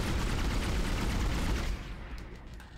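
A weapon fires with a loud, rushing blast.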